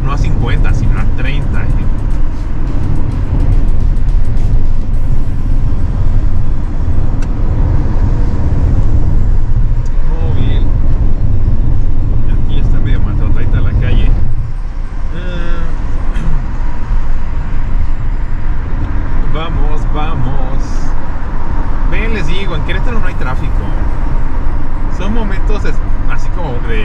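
A car's engine and tyres rumble steadily on the road, heard from inside the car.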